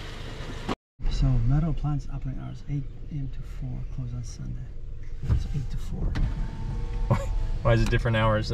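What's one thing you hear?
A pickup truck's engine runs, heard from inside the cab.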